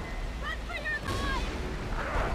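Warriors clash in a fight, with blows landing.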